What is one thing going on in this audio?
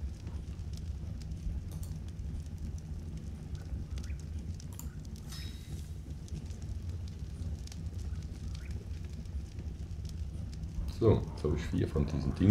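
Soft menu clicks sound now and then.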